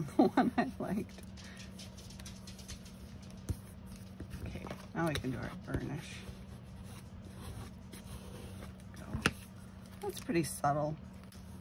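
Paper rustles and taps softly as hands handle small cards.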